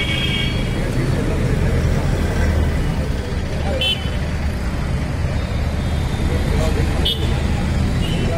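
A bus engine rumbles as the bus drives slowly out.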